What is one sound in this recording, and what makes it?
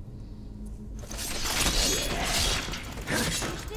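Swords clash and scrape in a fight.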